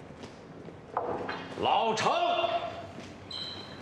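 A man calls out a name from a short distance.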